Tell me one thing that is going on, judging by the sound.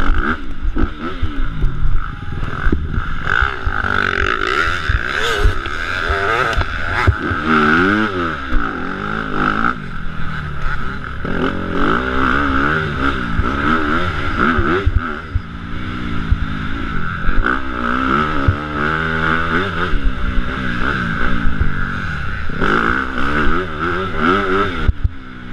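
A dirt bike engine revs up and down loudly up close.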